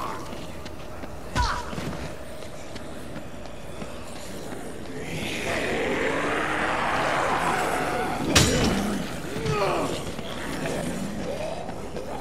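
Footsteps patter on pavement.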